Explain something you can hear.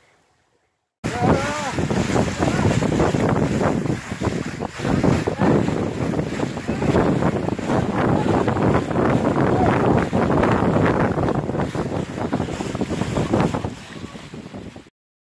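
Water rushes and splashes along a moving boat's hull.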